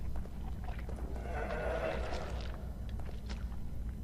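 A creature growls and rasps.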